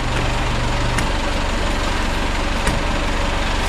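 A van door latch clicks.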